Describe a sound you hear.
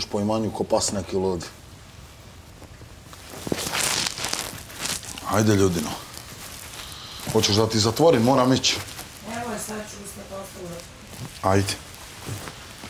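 A man speaks loudly and animatedly nearby.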